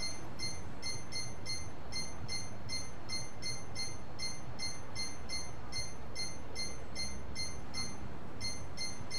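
A game menu cursor beeps with quick, short blips as it scrolls.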